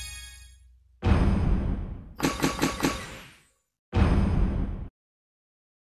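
Short electronic game sound effects whoosh and chime.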